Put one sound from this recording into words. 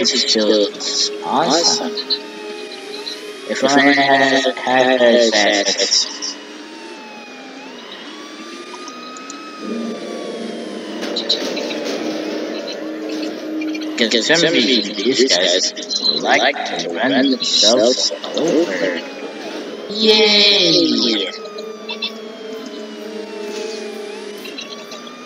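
A forklift engine hums steadily as it drives.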